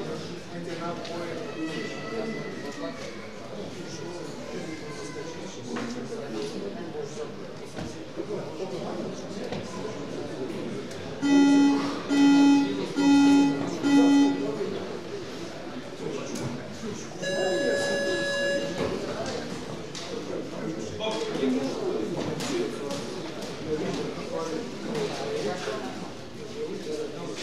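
A crowd of spectators murmurs and chatters in an indoor hall.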